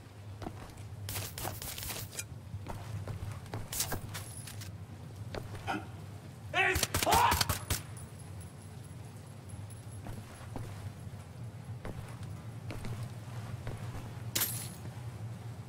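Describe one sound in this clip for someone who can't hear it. Small items clink and rattle as they are picked up.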